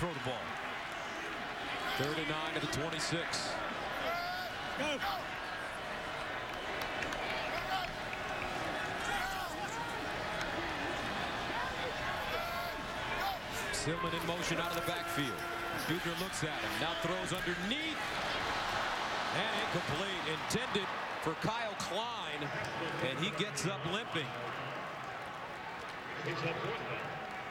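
A large crowd roars and cheers in a big open stadium.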